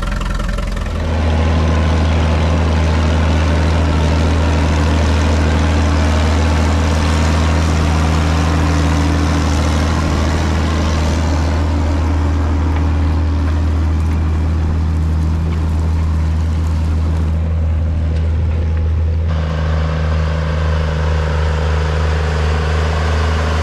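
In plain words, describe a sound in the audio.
A large tractor engine rumbles loudly and steadily close by.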